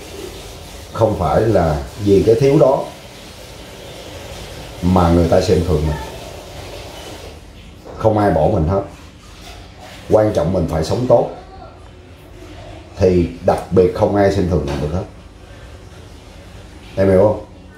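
A middle-aged man talks with animation close by, in short bursts.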